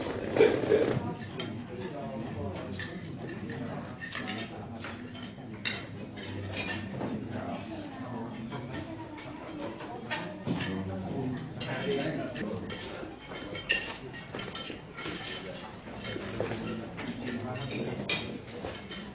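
Men chat quietly nearby.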